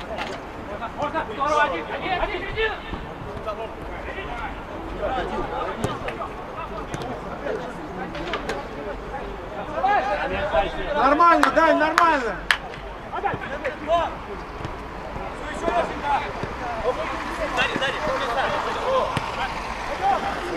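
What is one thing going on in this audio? Young men shout to each other.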